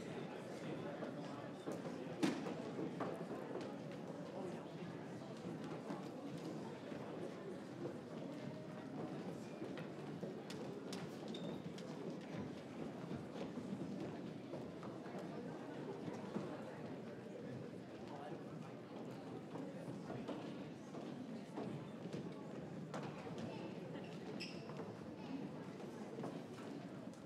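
A large group of young people chatter and murmur on a stage in an echoing hall.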